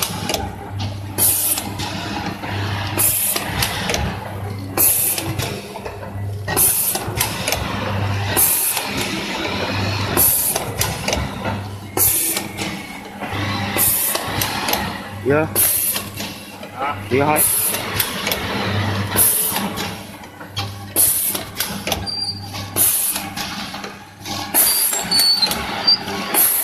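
Metal jaws of a packing machine clack shut in a regular rhythm.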